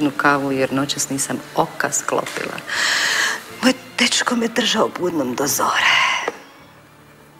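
A woman speaks calmly and warmly up close.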